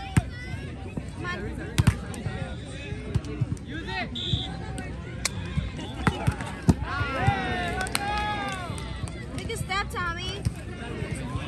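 Hands strike a volleyball with sharp slaps.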